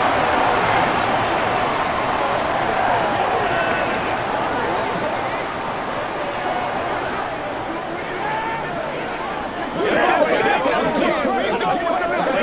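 A man calls out a play to a huddle of players.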